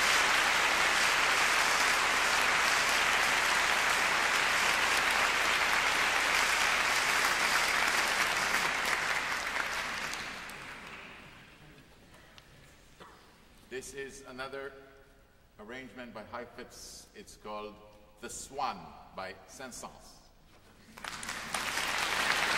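An audience applauds loudly in a large hall, then fades.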